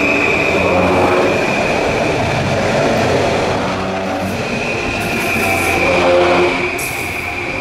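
A train rumbles past close by.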